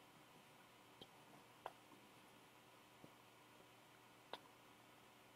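A man's footsteps tap on a hard floor.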